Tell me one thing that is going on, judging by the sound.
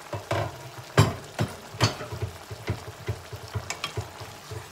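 A wooden spoon scrapes and knocks against a metal pan.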